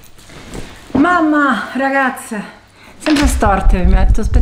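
A middle-aged woman talks with animation close to the microphone in a quiet room.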